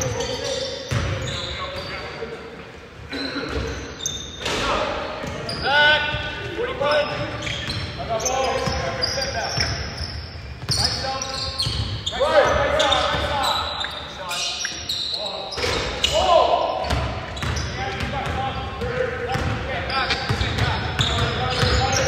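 A basketball bounces with dull thuds on the court.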